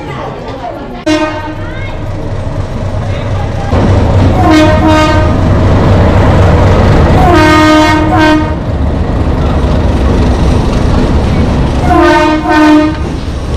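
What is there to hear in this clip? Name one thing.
A train horn blares loudly several times.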